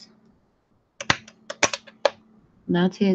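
A blade taps on a hard surface.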